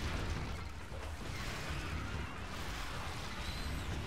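Creatures clash and screech in a fierce fight.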